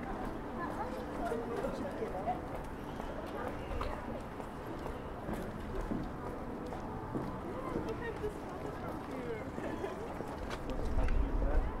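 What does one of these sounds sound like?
Footsteps tap on a wet walkway.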